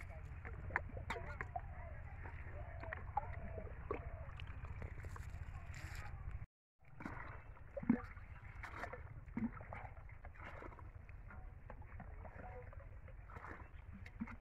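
Water splashes as a mug scoops it from a bucket.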